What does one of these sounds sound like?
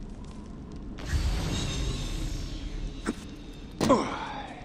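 A torch flame crackles and roars close by.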